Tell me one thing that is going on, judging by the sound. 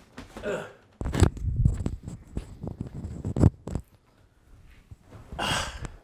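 Clothing rustles and thumps close by.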